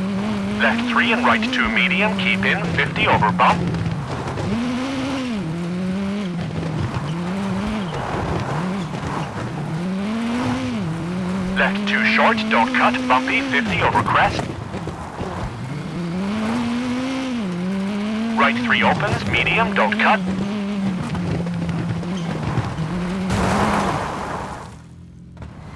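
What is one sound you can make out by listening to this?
Tyres crunch and spray over loose gravel.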